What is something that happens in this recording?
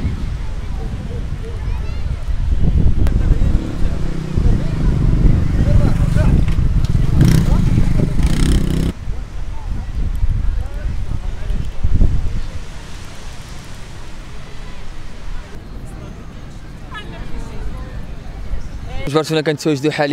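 Waves wash onto a beach in a steady rush, outdoors in wind.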